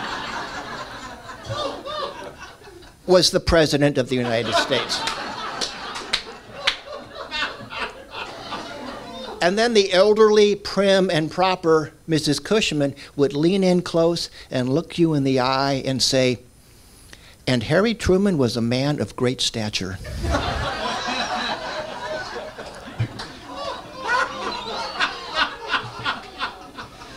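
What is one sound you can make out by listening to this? A man speaks calmly to an audience in a room with slight echo.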